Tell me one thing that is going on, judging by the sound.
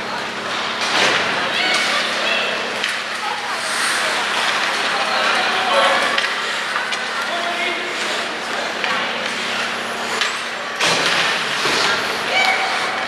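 Ice hockey skates scrape and carve on ice in an echoing arena.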